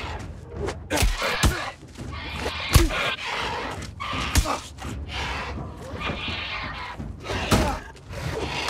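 A blade strikes a creature with sharp, heavy hits.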